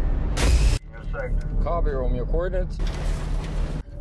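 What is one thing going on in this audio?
A man speaks into a two-way radio.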